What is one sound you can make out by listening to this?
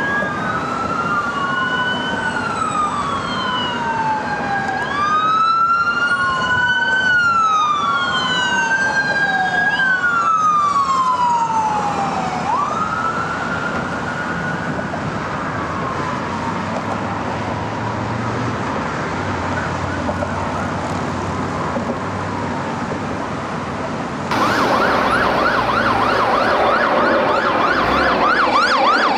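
Traffic rumbles steadily along a busy road.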